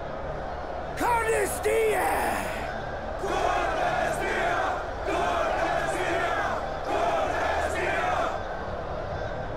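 A man shouts loudly and forcefully to a crowd.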